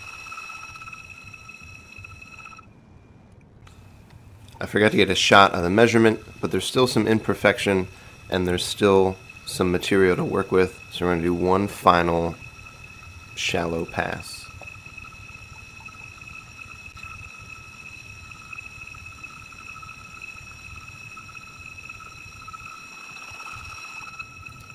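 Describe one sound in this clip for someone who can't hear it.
A brake lathe whirs steadily as it spins a brake disc.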